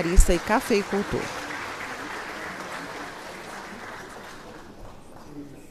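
A crowd applauds and slowly quiets down.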